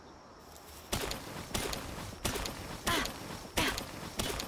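A pick strikes rock with sharp, cracking knocks.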